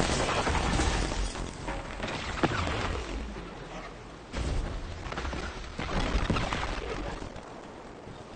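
Gunfire cracks amid rumbling blasts.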